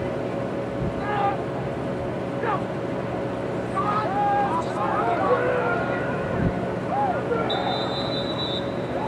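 Several spectators shout and cheer outdoors from close by.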